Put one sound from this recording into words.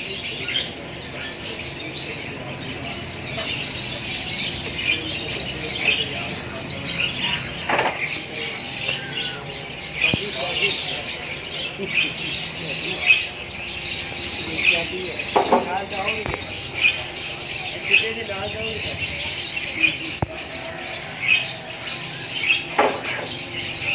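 A parrot chatters and squawks close by, on and off.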